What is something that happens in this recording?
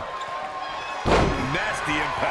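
A heavy body slams hard onto a wrestling mat.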